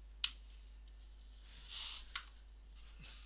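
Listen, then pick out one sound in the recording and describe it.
Small plastic clicks and taps sound on a laptop case.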